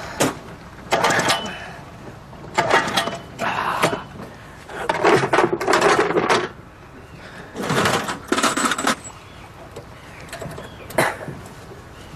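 A starter cord on an outboard motor is yanked again and again with a rasping whirr.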